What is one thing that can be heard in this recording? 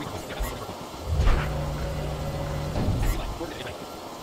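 An explosion booms nearby with a deep rumble.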